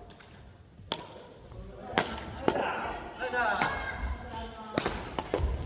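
Badminton rackets hit a shuttlecock with sharp pops in a large echoing hall.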